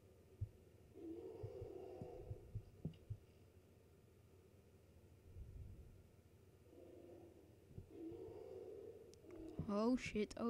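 A bear growls and snarls in an echoing cave.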